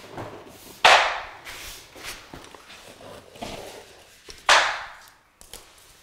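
Tape tears and rips as it is peeled away from a wall.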